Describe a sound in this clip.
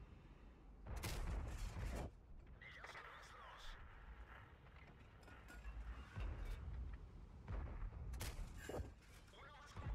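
Tank guns fire with sharp booms.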